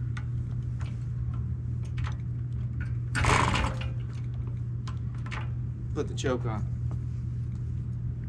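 A moped's pedals and chain click and rattle as they are pushed round.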